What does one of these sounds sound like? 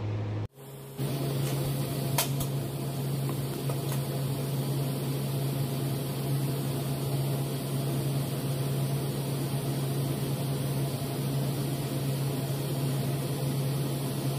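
A welding torch arc hisses and buzzes steadily.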